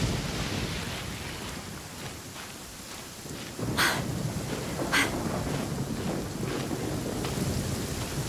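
A game character scrambles up a rock face with scraping steps.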